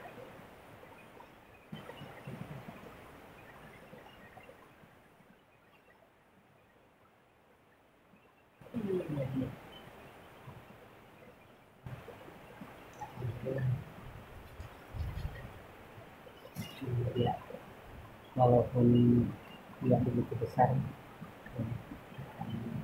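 A muddy river rushes steadily nearby.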